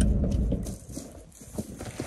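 Cardboard boxes scrape and thud as they are shifted.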